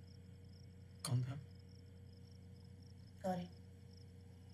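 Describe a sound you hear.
A man speaks briefly in a low, tense voice.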